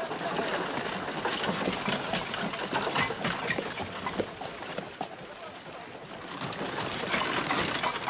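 A wooden cart creaks and rattles as it rolls.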